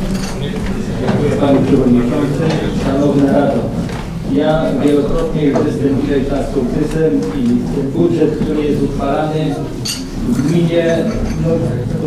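An elderly man speaks into a microphone, heard over a loudspeaker in an echoing room.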